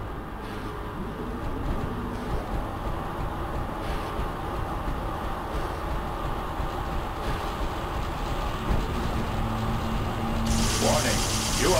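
Heavy mechanical footsteps stomp steadily.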